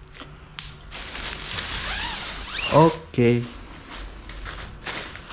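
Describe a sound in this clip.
A plastic bag crinkles and rustles as it is handled up close.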